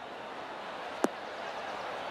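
A golf ball lands with a sharp thud.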